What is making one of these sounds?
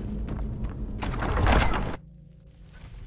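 A heavy stone door grinds open with a loud rumble.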